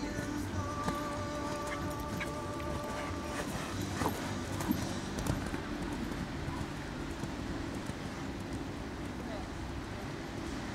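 Horse hooves thud softly on sand.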